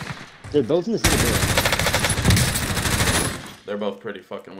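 Rapid automatic gunfire rattles loudly.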